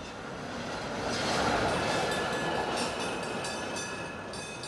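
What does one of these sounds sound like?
Tram wheels squeal on the rails.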